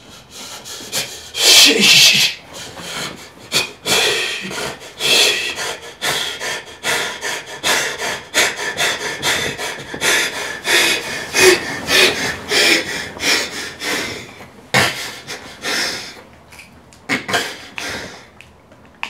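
A middle-aged man cries out loudly and with emotion, close by.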